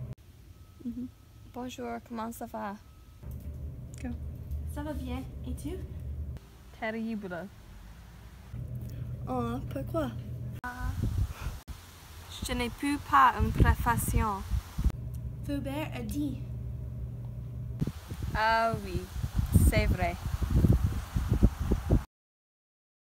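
A young woman talks on a phone in a calm, friendly way, close by.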